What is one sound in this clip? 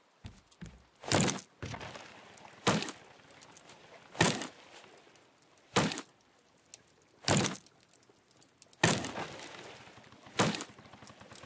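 An axe chops into a tree trunk with sharp, regular thuds.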